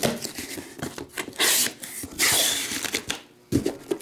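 Cardboard flaps scrape and rustle as a box is opened.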